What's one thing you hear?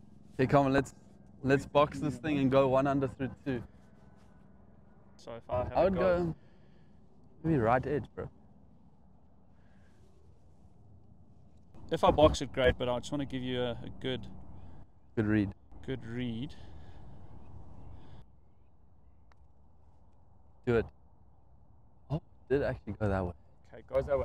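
Men talk casually nearby outdoors.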